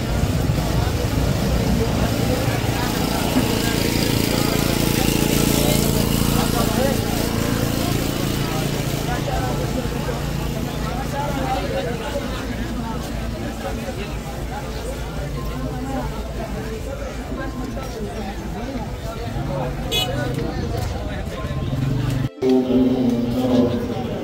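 A crowd of men chatters all around.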